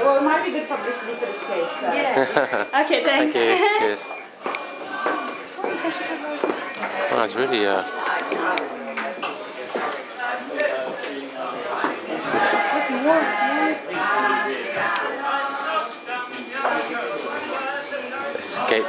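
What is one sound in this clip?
People chatter in a busy room.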